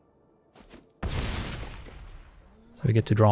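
A heavy magical impact hits with a loud whooshing burst.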